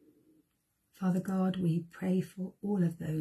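A middle-aged woman speaks calmly into a nearby microphone.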